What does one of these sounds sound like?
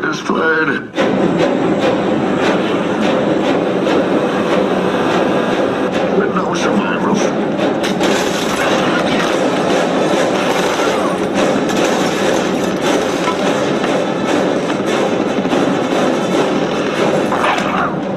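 An airplane's engines roar in flight.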